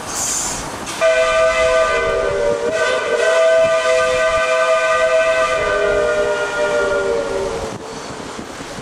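A steam locomotive's whistle blows loudly and steadily.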